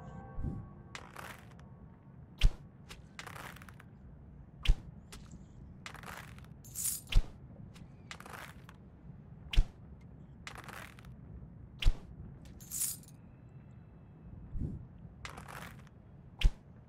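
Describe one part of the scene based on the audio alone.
Arrows whoosh through the air.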